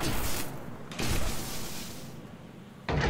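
Electric sparks crackle and fizz.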